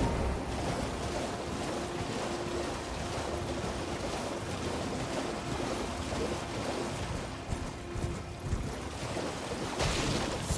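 A horse gallops through shallow water, hooves splashing.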